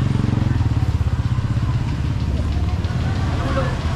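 A motorbike engine hums past.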